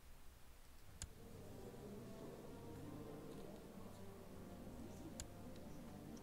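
A game menu clicks open.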